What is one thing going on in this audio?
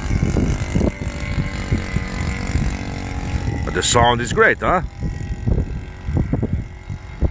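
A small model airplane engine drones steadily in the distance.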